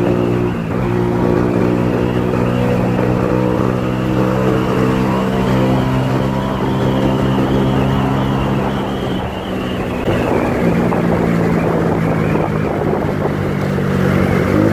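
A motorcycle engine hums steadily close by, its pitch shifting as it changes speed.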